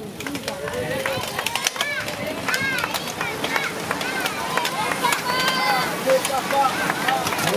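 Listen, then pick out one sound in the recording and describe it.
Bicycle pedals and gears click sharply as a pack of cyclists sets off.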